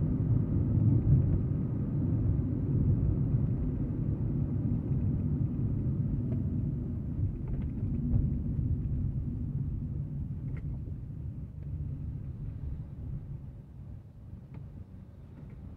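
A car engine hums low and steady from inside the car, slowly getting quieter.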